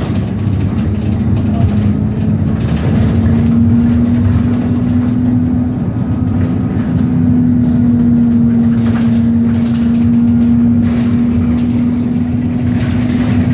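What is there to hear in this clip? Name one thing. A tram rumbles along steadily, with a low hum from its motor.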